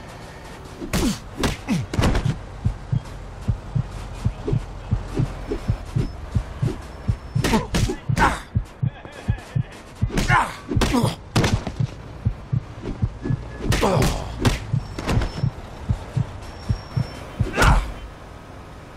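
A man grunts and groans with effort and pain.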